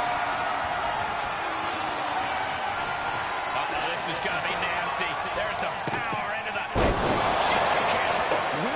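A large crowd cheers and roars steadily in an echoing arena.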